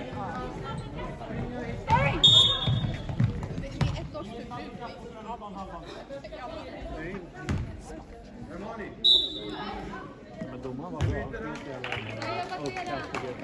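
Young women call out to each other during play.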